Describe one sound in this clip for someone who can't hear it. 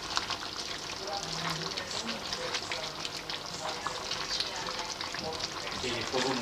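Food sizzles and bubbles in a pan.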